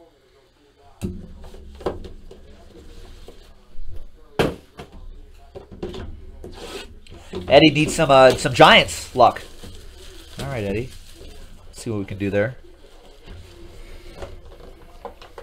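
Cardboard boxes knock and shuffle.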